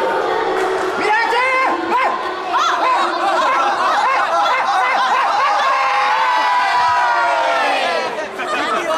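A group of children cheers together loudly.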